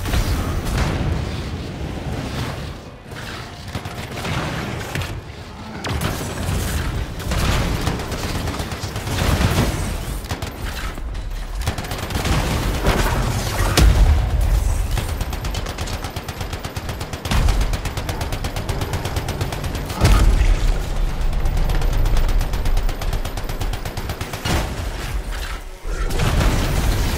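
Rapid gunfire rattles and booms in bursts.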